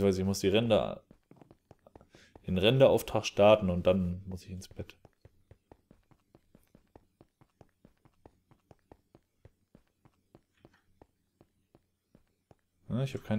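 Footsteps tap quickly and evenly on stone.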